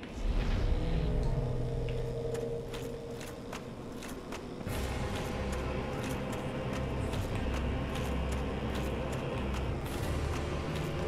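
Armoured footsteps clank in a slow rhythm.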